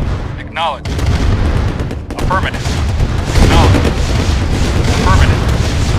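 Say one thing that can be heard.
Shells explode with deep booms.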